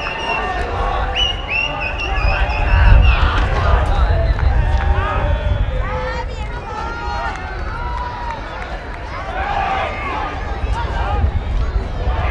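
Players shout to each other across the field.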